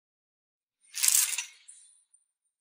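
Clothes rustle and hangers clack on a rail.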